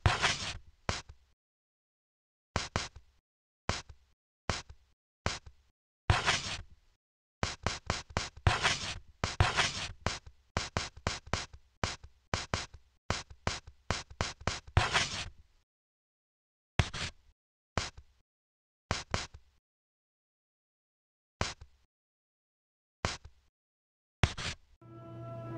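Short electronic menu blips sound in quick bursts.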